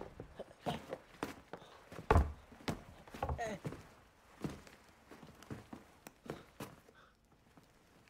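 A boy whimpers and gasps in pain close by.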